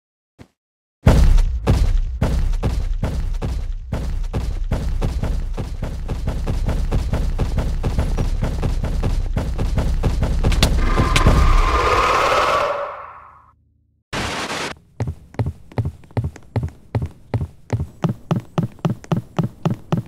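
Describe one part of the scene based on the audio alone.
Footsteps thud quickly on a wooden floor.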